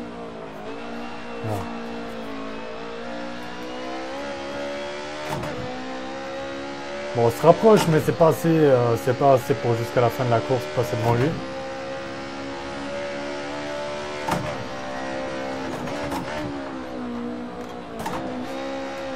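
A racing car engine drones steadily, rising and falling in pitch.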